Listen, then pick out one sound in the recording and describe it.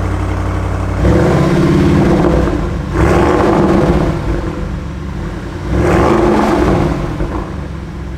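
A car engine revs loudly in sharp bursts.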